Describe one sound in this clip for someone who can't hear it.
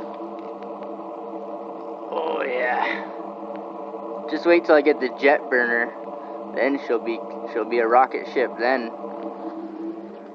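A small wood fire crackles softly.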